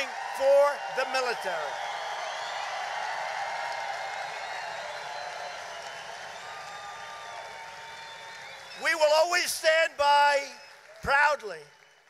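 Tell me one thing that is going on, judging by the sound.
A man speaks forcefully through loudspeakers.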